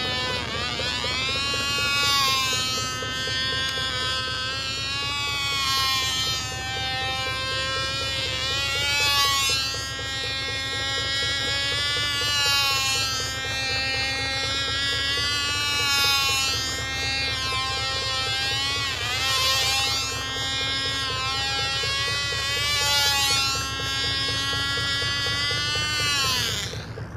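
A small model airplane engine whines high overhead, its pitch rising and falling as it passes back and forth.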